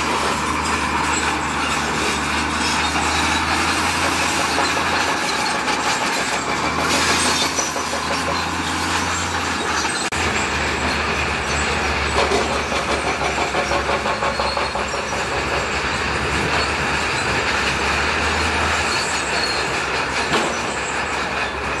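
Tracks clank and rocks crunch as a bulldozer pushes gravel.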